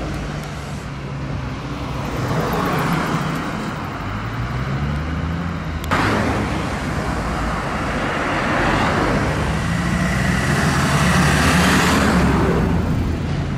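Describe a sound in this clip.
A minibus engine rumbles and pulls away.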